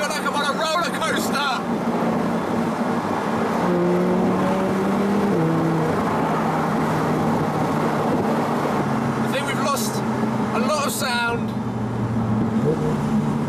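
Wind rushes past in an open car.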